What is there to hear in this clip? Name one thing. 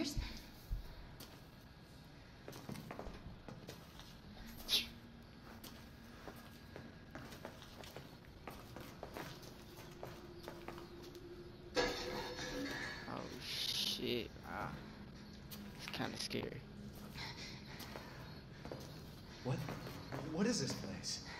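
Footsteps tread slowly over a hard floor.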